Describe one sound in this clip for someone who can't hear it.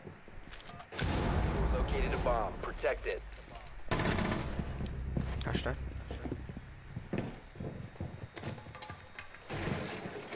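A gun fires loud shots in quick bursts.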